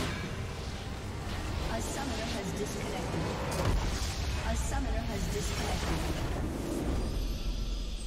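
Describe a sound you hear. Magic spells crackle and clash in a busy fight.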